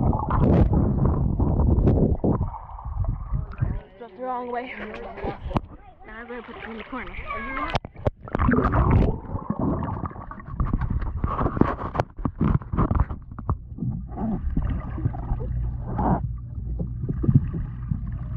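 Water splashes and churns close by.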